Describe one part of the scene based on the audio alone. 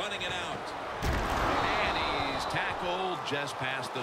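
Players collide in a heavy tackle.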